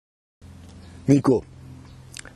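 A man speaks into a microphone outdoors.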